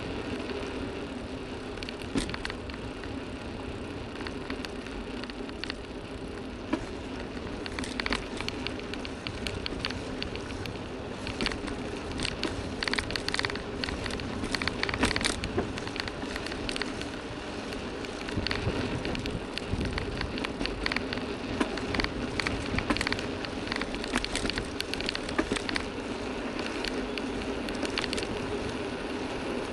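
Wheels roll steadily over an asphalt road.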